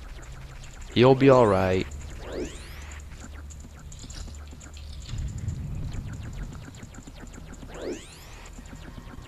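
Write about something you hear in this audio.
A sword whooshes through the air in a quick spinning slash.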